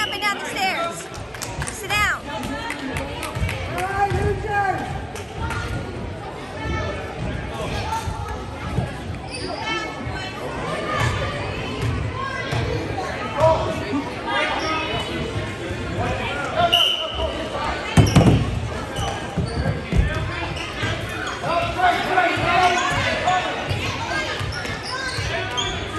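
A crowd of children and adults chatters and calls out in a large echoing gym.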